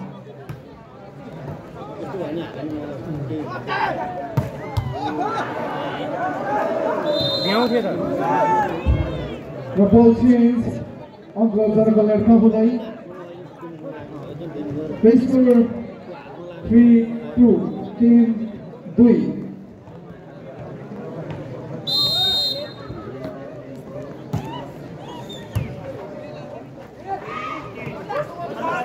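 A large outdoor crowd cheers and chatters.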